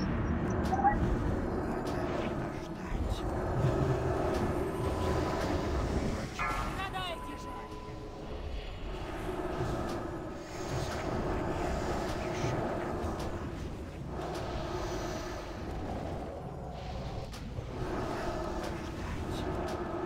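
Magic spells crackle and boom in a busy battle.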